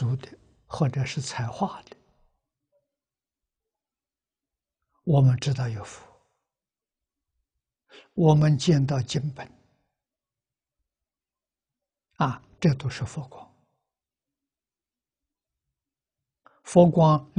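An elderly man speaks calmly in measured phrases with long pauses, close to a clip-on microphone.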